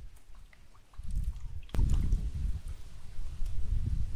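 Water splashes as onions are rinsed in a bowl.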